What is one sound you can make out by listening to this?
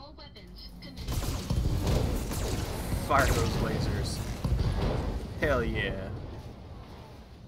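Loud explosions and weapon fire boom and rumble.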